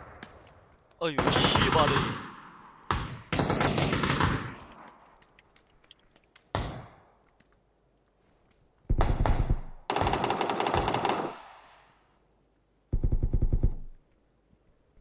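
Gunfire rattles in rapid, loud bursts, echoing indoors.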